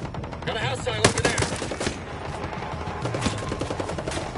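Gunshots crack nearby in short bursts.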